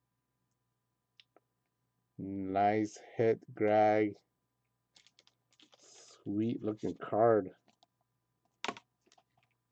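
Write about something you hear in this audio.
A plastic card holder rustles and taps as it is handled.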